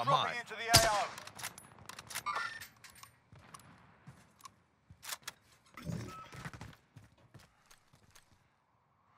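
A rifle's bolt and parts click and clack as it is handled.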